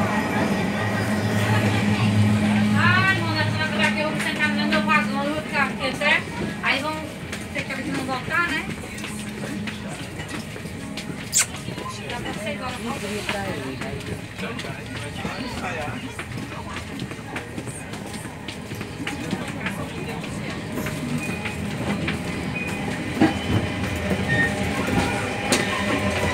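A train rumbles steadily while moving.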